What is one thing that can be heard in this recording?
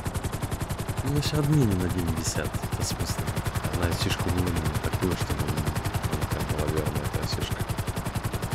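A young man talks through a headset microphone.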